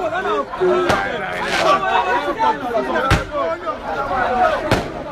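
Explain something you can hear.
A crowd of men shouts and talks excitedly close by, outdoors.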